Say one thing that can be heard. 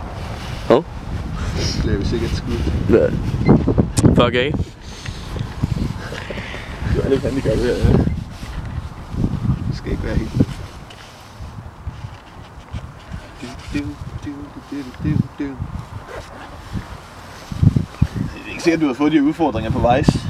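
A young man talks and laughs close by, straining.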